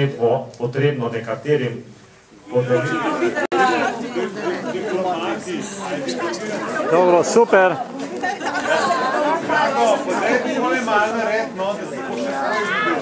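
A group of men and women talk and chatter nearby.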